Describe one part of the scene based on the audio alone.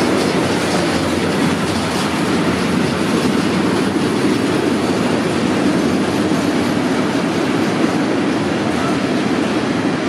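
A freight train rumbles steadily past close by.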